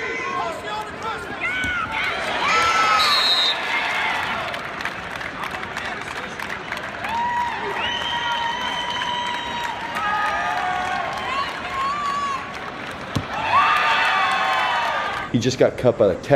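A large crowd cheers and shouts in a big echoing hall.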